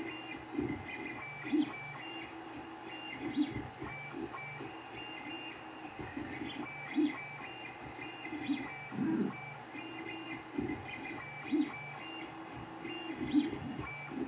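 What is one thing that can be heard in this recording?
A fan hums steadily.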